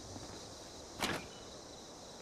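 A small metal door swings open with a clank.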